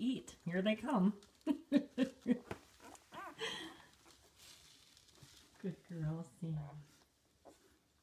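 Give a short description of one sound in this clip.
Newborn puppies whimper and squeak close by.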